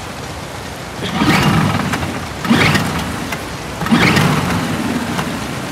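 An outboard motor's starter cord is yanked hard several times.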